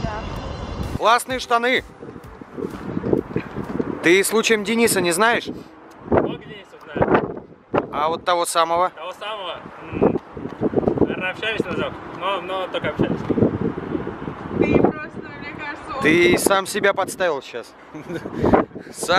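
A young man speaks loudly outdoors.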